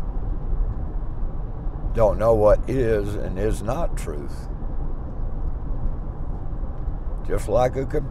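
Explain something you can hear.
A car engine hums steadily with low road rumble.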